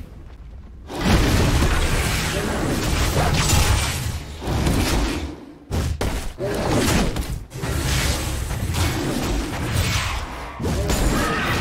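Blows and magic blasts crash in a hectic fight.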